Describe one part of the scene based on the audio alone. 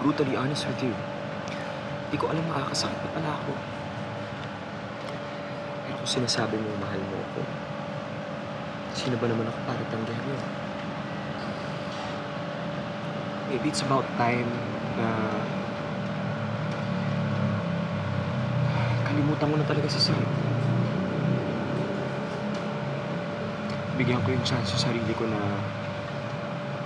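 A young man speaks quietly and earnestly close by.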